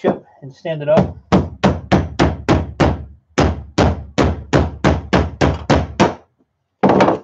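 A hammer strikes in quick, regular blows.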